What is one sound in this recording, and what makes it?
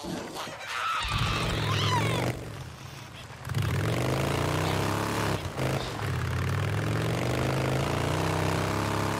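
A motorcycle engine starts and revs up, then rumbles steadily as the bike rides along.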